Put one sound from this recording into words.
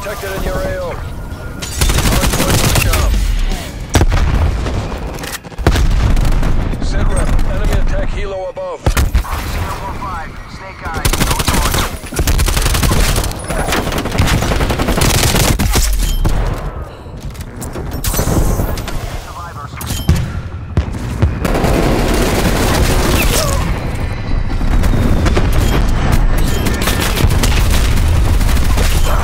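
Rifle fire rattles in rapid bursts.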